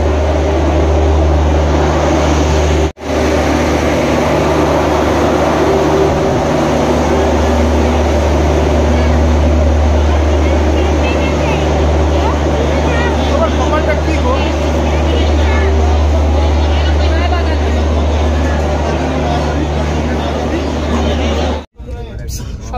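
A crowd chatters on a busy platform.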